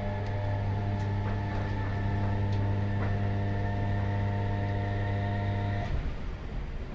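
A train's motor hums steadily, then cuts off.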